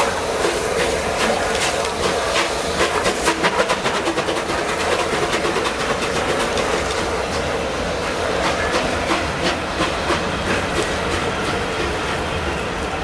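A steam locomotive chuffs hard as it pulls away.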